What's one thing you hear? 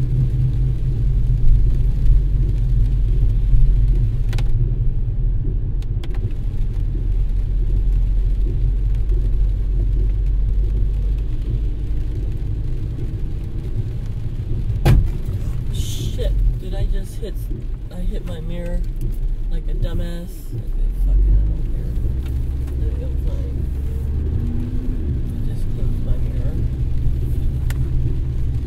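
Windshield wipers sweep across the glass.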